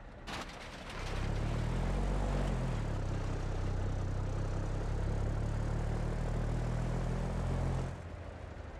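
A truck's diesel engine idles with a deep, steady rumble.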